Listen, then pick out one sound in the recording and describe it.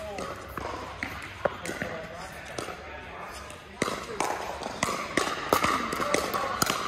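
Paddles knock a plastic ball back and forth with sharp pops in a large echoing hall.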